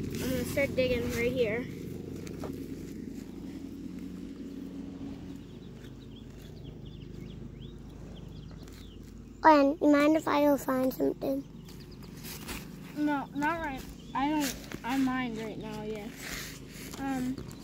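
A small hand trowel scrapes and digs into dry soil.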